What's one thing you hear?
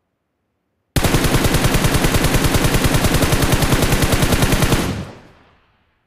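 Rapid automatic gunfire rattles in a fast burst.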